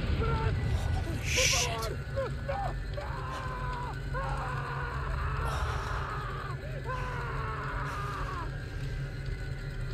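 Wood crackles in a blazing fire.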